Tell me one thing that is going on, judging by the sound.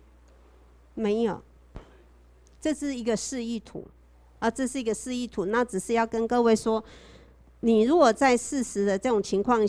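A woman lectures calmly into a microphone.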